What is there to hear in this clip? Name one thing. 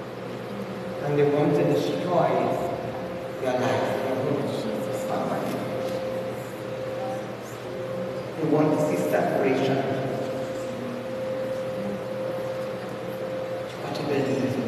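A man speaks with feeling into a microphone, close by.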